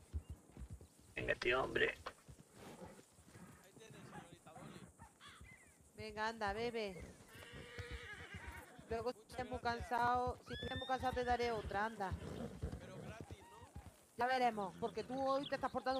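Horse hooves thud softly on grass.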